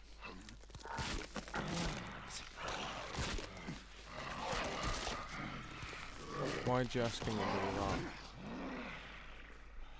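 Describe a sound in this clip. A second man answers angrily, raising his voice.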